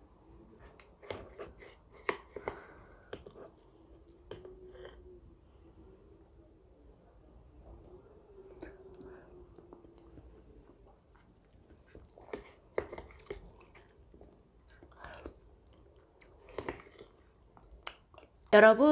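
A woman eats and slurps soft food close to a microphone.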